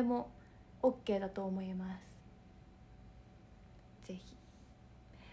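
A young woman speaks softly and expressively close to a microphone.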